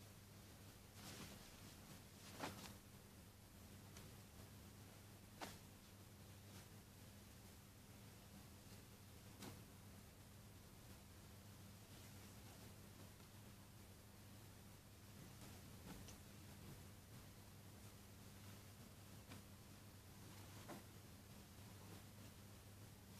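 Fabric rustles as clothes are laid down and smoothed by hand.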